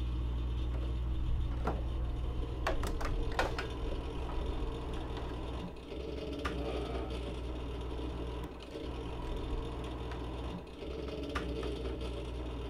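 A plastic gas can clunks and clicks as it is handled.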